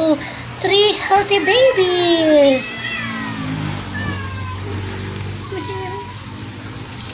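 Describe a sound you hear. Newborn kittens mew in high, thin cries.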